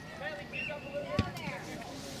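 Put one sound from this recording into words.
A foot kicks a ball with a thump.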